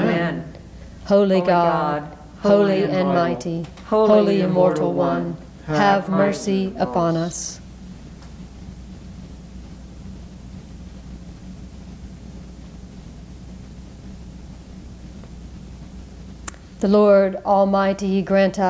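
A middle-aged woman reads aloud calmly into a microphone.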